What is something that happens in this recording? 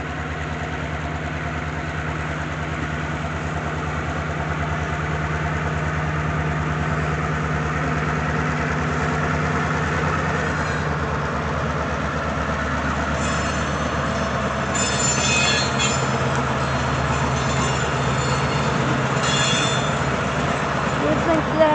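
A diesel locomotive engine rumbles steadily as it approaches.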